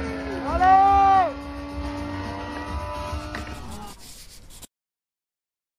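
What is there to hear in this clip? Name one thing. Skateboard wheels roll and clatter on concrete outdoors.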